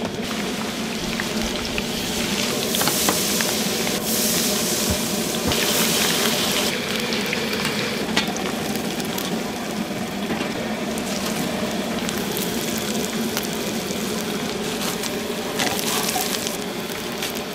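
Hot oil sizzles and bubbles loudly.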